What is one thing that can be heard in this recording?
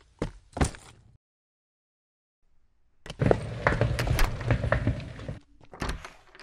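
Suitcase wheels roll over concrete.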